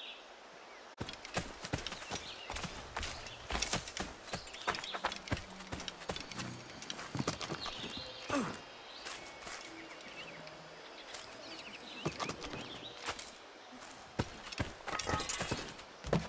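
Footsteps run quickly through grass and brush.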